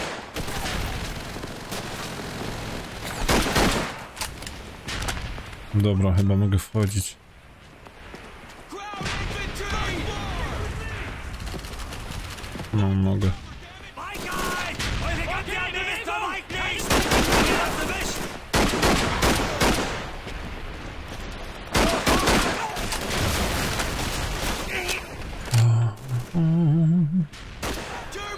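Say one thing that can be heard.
Rifle shots crack loudly in bursts.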